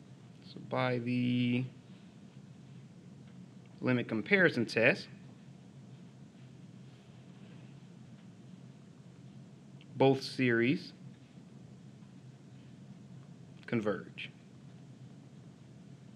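A pen scratches softly on paper.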